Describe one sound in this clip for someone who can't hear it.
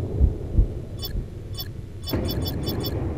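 Short electronic menu beeps tick quickly.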